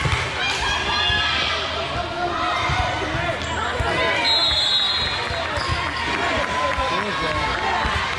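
Girls shout and cheer excitedly in a large echoing hall.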